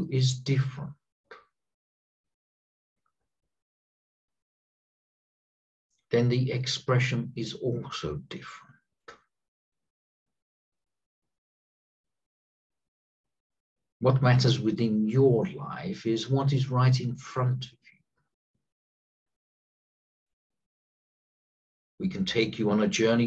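A middle-aged man speaks calmly and slowly through a headset microphone, with long pauses.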